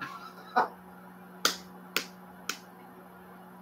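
A man claps his hands loudly a few times.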